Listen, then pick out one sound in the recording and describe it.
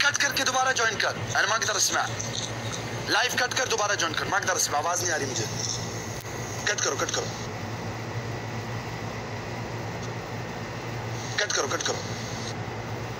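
A young man speaks casually, heard through an online call.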